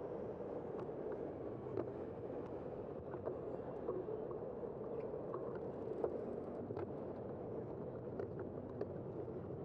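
A bicycle rattles and clicks over the road.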